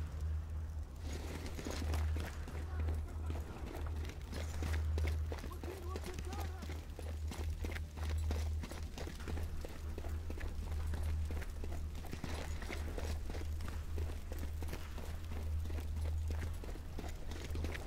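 Footsteps fall on a stone floor.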